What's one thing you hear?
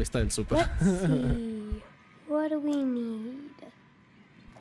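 A young man talks with animation.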